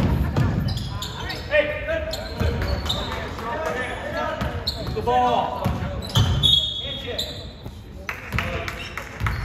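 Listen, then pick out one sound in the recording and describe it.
A basketball bounces on a wooden floor with thuds echoing in a large hall.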